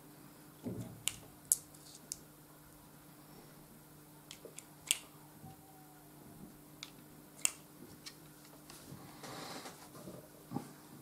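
Metal parts of a revolver click and clack as they are handled.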